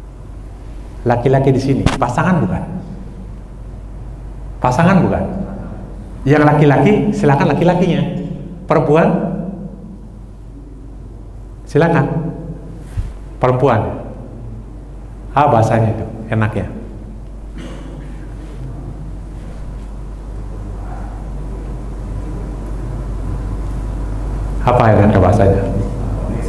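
A man speaks with animation into a clip-on microphone, in bursts with pauses, in a room with some echo.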